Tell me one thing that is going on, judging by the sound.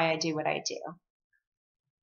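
A woman speaks cheerfully and close to a microphone.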